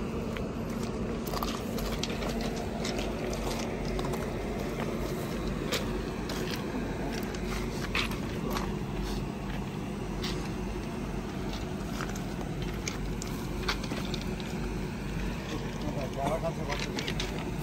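Footsteps crunch on loose gravel.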